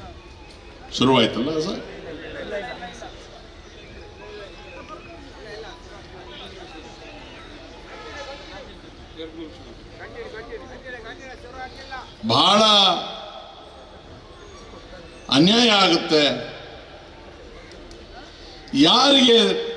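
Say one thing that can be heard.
A middle-aged man speaks forcefully into a microphone over loudspeakers, in bursts with pauses.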